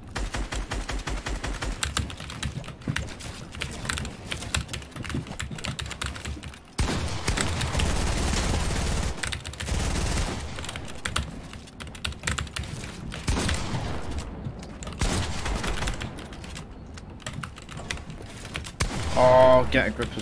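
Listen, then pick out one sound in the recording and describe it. Footsteps patter quickly over wooden floors.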